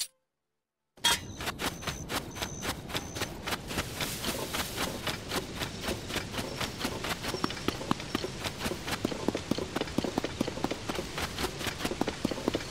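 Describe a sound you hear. Footsteps patter quickly over sand.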